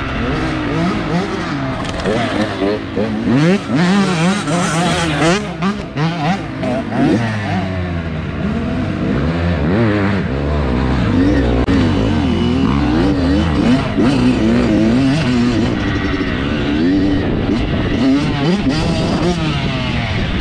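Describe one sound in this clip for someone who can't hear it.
A dirt bike engine revs and roars up close.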